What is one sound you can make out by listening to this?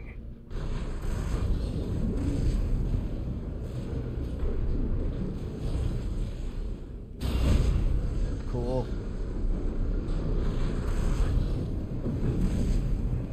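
Heavy gunfire and explosions rumble and boom.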